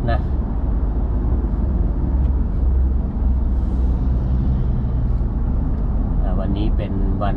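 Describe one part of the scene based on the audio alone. A car engine hums steadily with a low rumble as the car drives along a road.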